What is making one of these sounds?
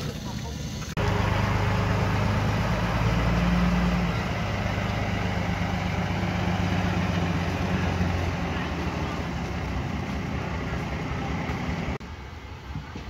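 A wheel loader's diesel engine rumbles loudly as it drives.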